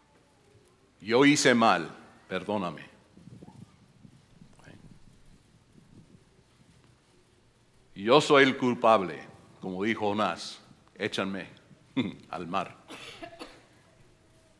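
An elderly man speaks with animation through a microphone, pausing between phrases.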